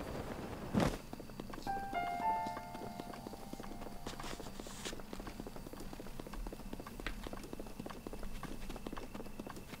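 Footsteps run on grass.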